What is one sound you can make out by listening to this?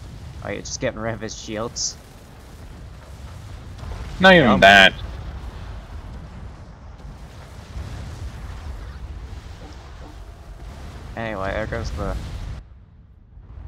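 Explosions boom and weapons fire in a loud battle.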